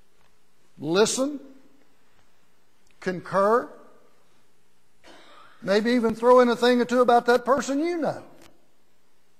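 An older man speaks with emphasis through a microphone.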